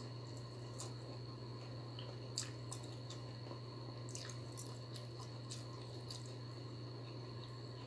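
Fingers squish and rustle through soft rice on a plate.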